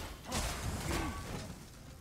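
A lightning bolt crackles loudly.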